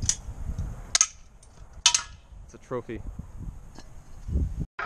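A metal bike frame clatters onto pavement.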